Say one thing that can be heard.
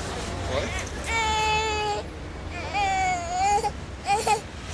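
An infant cries.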